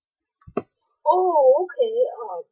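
A monster wails with a warbling cry.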